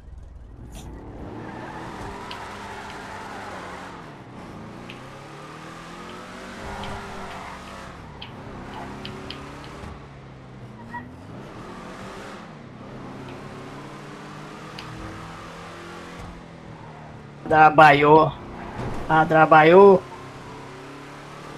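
A car engine rumbles and revs up and down as the car drives.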